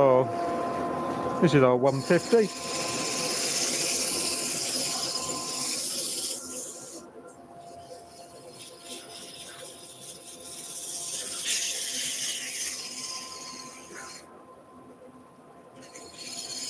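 A lathe hums steadily as it spins.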